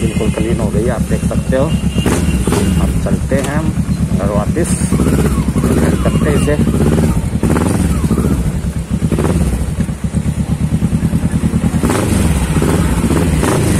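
A parallel-twin sport motorcycle rumbles as it rides slowly.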